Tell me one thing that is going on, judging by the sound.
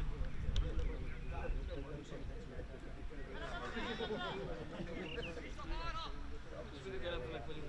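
Men talk and call out outdoors at a distance.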